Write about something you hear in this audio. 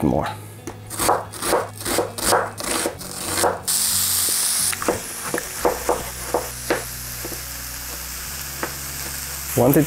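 A knife chops quickly on a cutting board.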